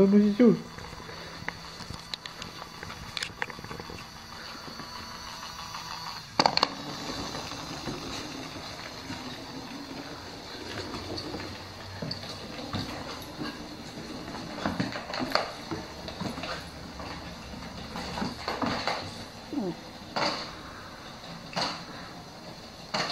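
A small dog's claws click and patter on a hard wooden floor.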